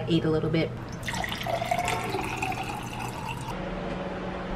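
Water pours into a glass.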